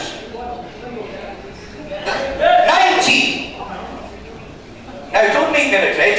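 A man calls out bids rapidly over a loudspeaker in an echoing hall.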